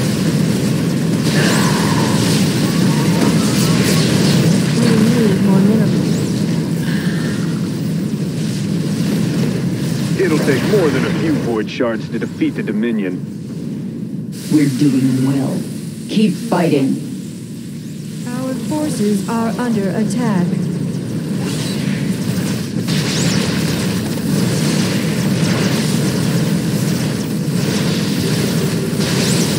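Rapid gunfire rattles in a busy battle.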